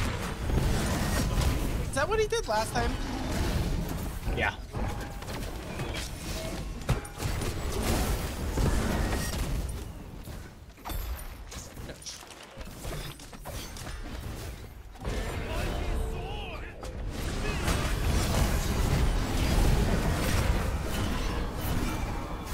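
Fiery blasts whoosh through the air.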